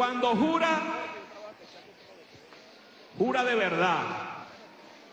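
A large crowd chants and cheers loudly outdoors in bursts.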